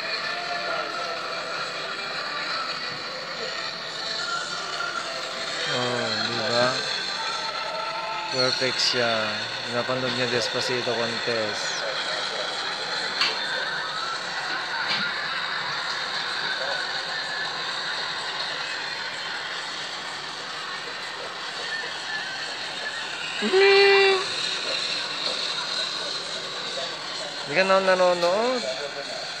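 Music plays through a small phone speaker.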